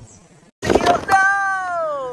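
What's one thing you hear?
A car tyre rolls over a can and crushes it with a loud crunch.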